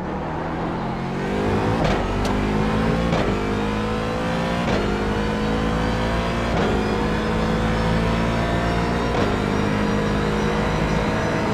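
A racing car engine roars steadily, rising in pitch.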